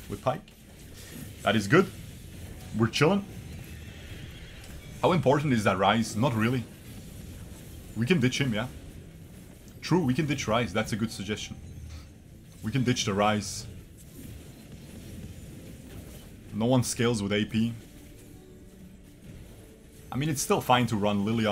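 A young man talks with animation into a close microphone, in bursts.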